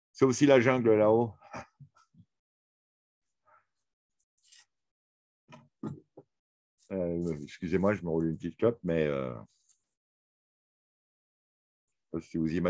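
An elderly man speaks calmly, heard through a recording.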